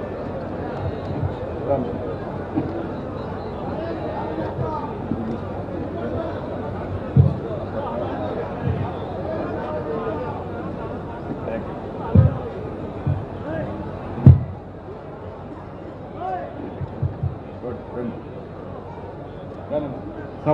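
A man speaks into a microphone, heard over a loudspeaker.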